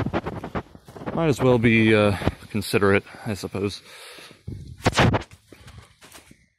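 Footsteps crunch through dry fallen leaves on a path.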